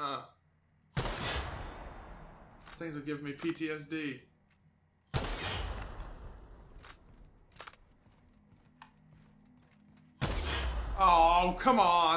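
A gun fires loud blasts that echo away.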